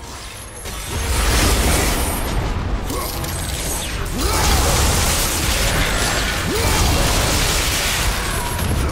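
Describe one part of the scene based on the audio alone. Deep rumbling battle noise swells and booms.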